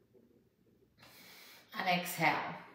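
A woman breathes out sharply through her nose.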